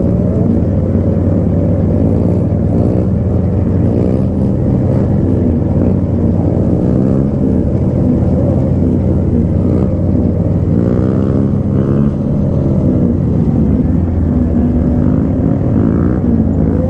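Other motorcycles rev their engines nearby, rising and falling.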